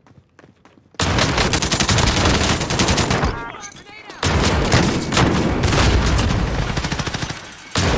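A gun fires rapid bursts.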